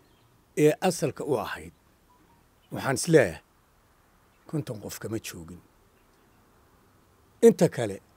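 An elderly man speaks calmly into microphones, in short phrases with pauses.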